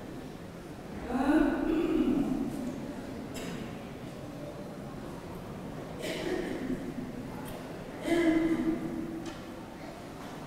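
A man chants slowly into a microphone in an echoing hall.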